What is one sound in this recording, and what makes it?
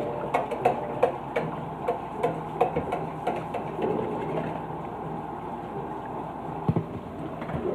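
A knife chops on a cutting board in quick, regular taps.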